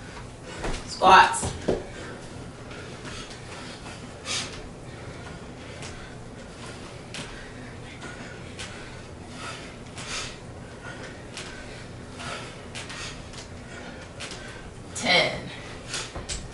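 A man groans loudly with effort.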